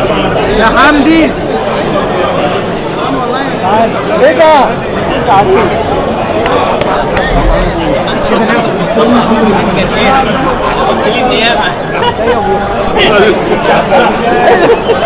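A crowd of men and women talks and calls out all at once.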